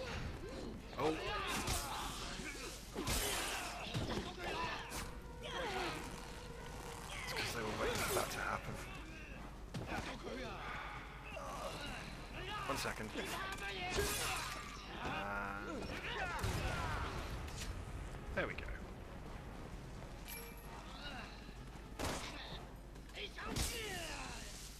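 Blows and impacts thud sharply during a fight.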